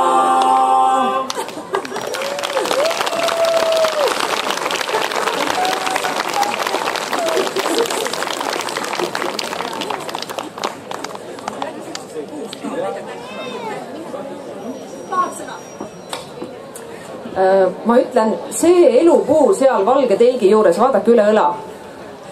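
A choir of women and men sings outdoors through loudspeakers.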